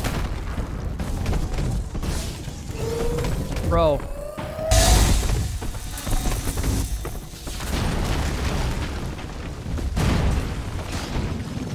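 Concrete and rubble crash and smash loudly.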